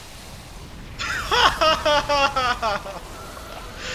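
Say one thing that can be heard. A huge serpent roars loudly and shrilly.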